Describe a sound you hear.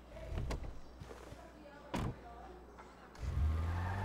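A car door shuts with a thud.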